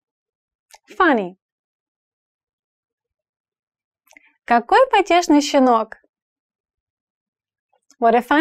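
A young woman speaks clearly and expressively into a close microphone, with pauses between words.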